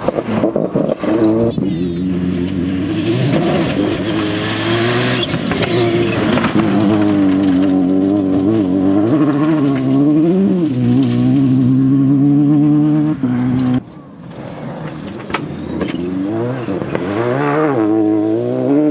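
A rally car engine revs hard through gear changes.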